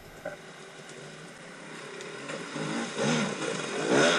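A dirt bike splashes through a shallow stream.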